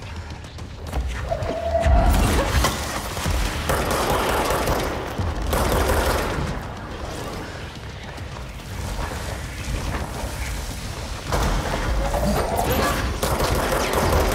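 Gunfire and blasts crack loudly and rapidly.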